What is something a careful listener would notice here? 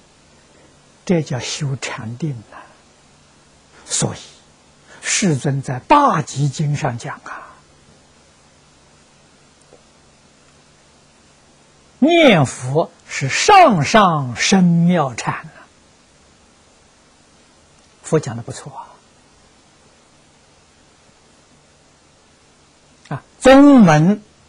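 An elderly man speaks calmly into a close microphone, in phrases with long pauses.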